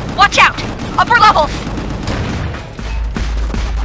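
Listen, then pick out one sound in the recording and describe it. An explosion booms and roars.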